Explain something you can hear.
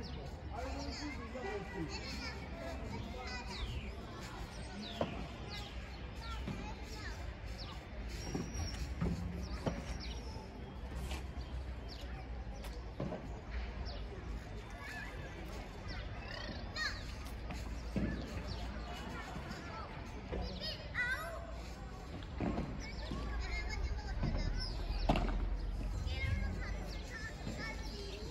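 Footsteps squeak and shuffle on a court.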